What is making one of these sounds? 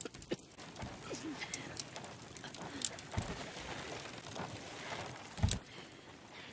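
Food sizzles on a hot grill.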